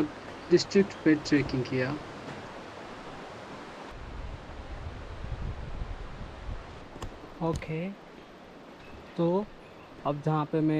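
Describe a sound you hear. A young man talks with animation close by, outdoors.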